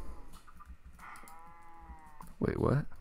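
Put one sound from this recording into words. A cow moos.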